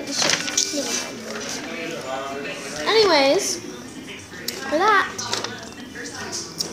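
Paper rustles in a girl's hands.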